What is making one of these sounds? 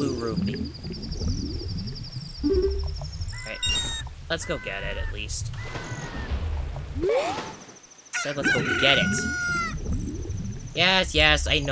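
Underwater bubbles gurgle.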